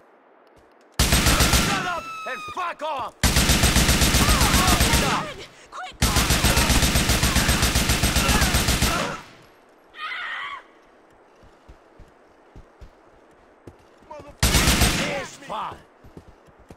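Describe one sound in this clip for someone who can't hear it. Rapid automatic gunfire bursts loudly.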